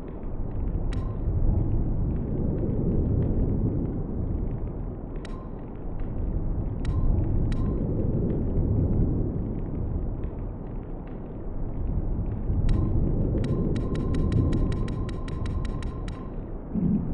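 Short electronic menu clicks blip as selections change.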